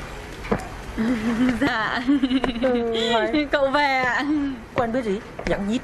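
A middle-aged woman laughs cheerfully.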